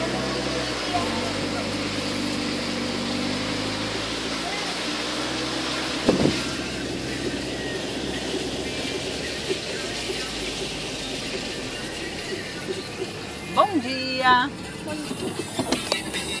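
Tyres roll over a muddy dirt road.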